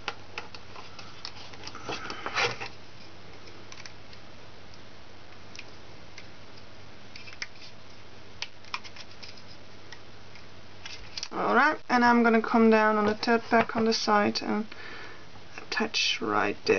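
Small plastic pieces click and rattle softly as they are handled.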